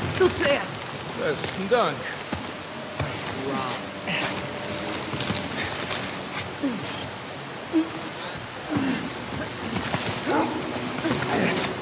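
Thick vines creak and rustle as they are pushed apart.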